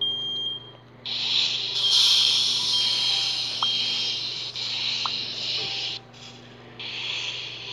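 A fire extinguisher sprays with a loud hiss.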